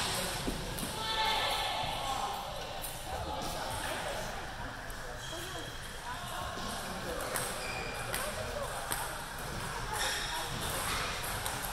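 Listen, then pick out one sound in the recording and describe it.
Ping-pong balls click sharply against a table and paddles in an echoing hall.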